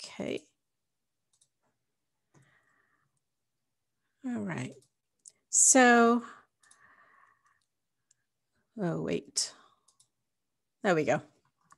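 A woman speaks in short bursts over an online call.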